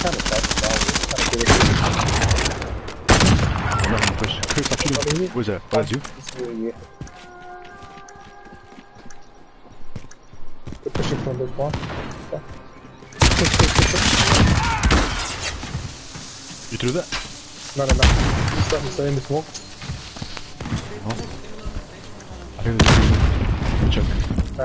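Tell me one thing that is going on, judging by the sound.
Gunshots crack in loud, rapid bursts.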